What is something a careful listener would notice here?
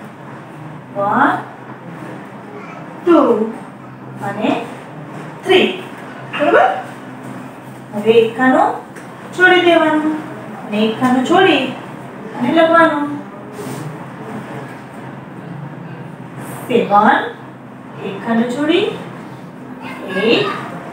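A woman speaks calmly and clearly, close by, in short phrases with pauses.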